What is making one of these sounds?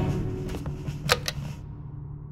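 A lamp switch clicks.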